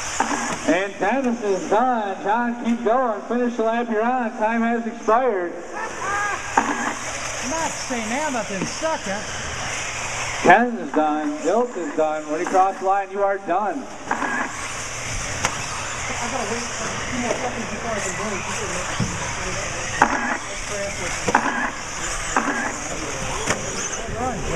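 Small electric racing cars whine as their motors rev up and down.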